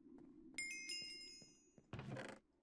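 A bright game chime rings out and fades.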